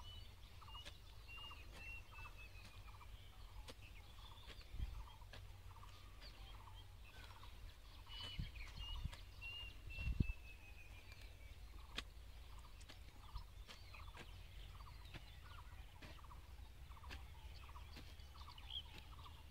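A hoe scrapes and chops into dry soil.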